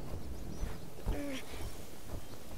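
A large creature gives a short warbling call.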